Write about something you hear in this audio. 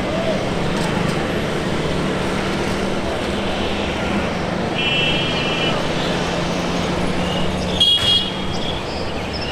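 A jet airliner's engines roar steadily as it rolls along a runway.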